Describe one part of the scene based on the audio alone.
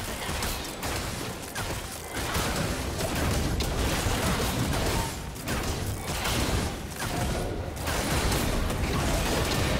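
Game battle effects crackle, whoosh and boom in quick succession.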